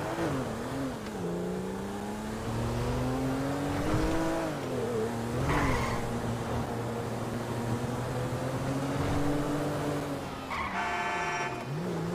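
A car engine hums steadily and revs up and down as the car drives.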